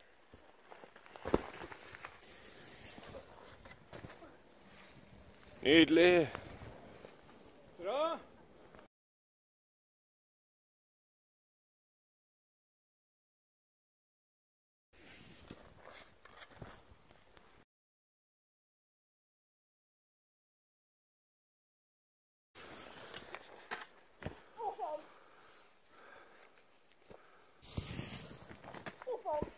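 Skis swish and hiss through powder snow.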